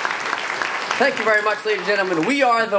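Young men sing together in harmony through microphones.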